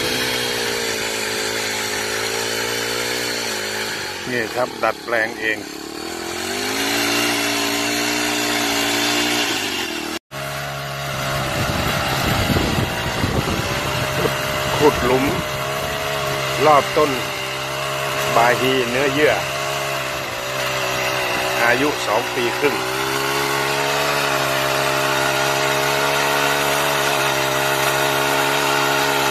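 A small petrol engine drones steadily close by.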